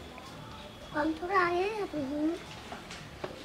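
A young child speaks up close.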